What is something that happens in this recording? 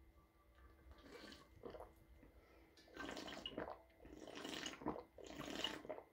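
A young man gulps water noisily from a bottle.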